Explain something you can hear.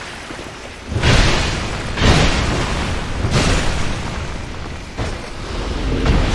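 A sword clangs as it strikes an armoured foe.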